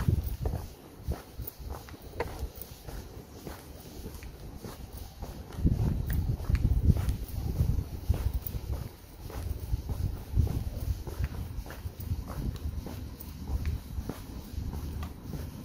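Footsteps tap steadily on a paved pavement outdoors.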